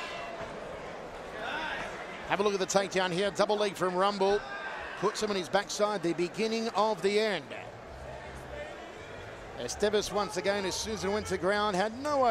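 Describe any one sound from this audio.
A crowd cheers and shouts in a large arena.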